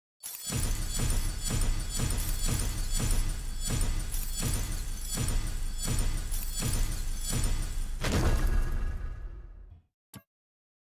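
Upbeat game music plays with a steady pounding beat, then fades out.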